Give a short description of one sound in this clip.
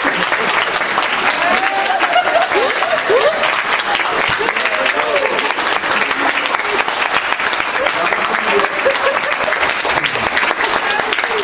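A crowd applauds and claps steadily in an echoing hall.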